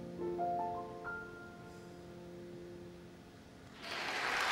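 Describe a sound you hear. A piano plays a few ringing notes that fade away.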